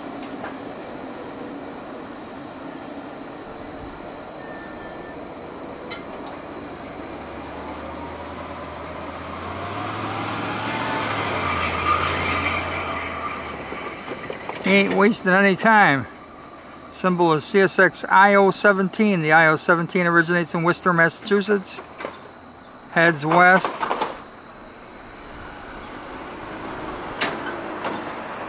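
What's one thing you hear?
A freight train rumbles steadily along the tracks outdoors.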